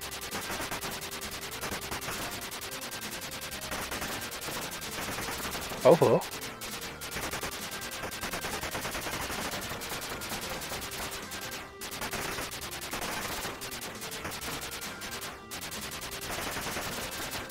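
Electronic game music plays steadily with a quick beat.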